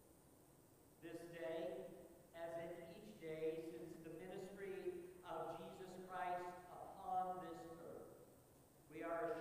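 A middle-aged man speaks calmly into a microphone in an echoing room.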